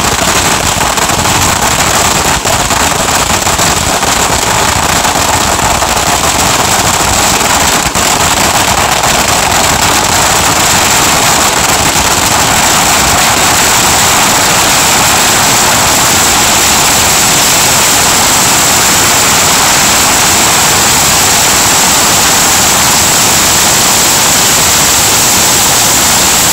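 Ground fireworks crackle and hiss outdoors.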